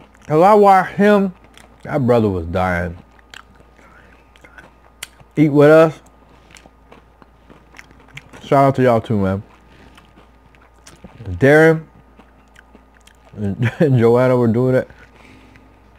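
A man chews food with soft mouth sounds.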